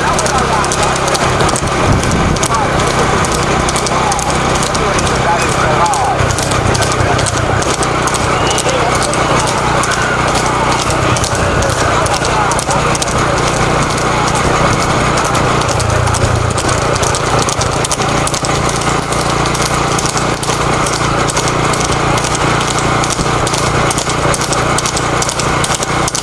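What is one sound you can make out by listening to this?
Horses' hooves clatter on a paved road.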